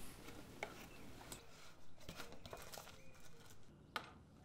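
Cardboard and plastic wrapping rustle.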